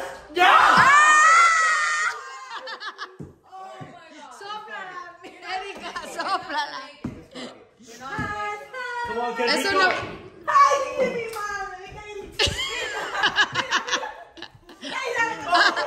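Young men and women talk and laugh together nearby.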